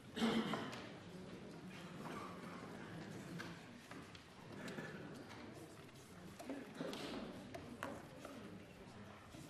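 A man speaks steadily through a microphone in a large echoing hall.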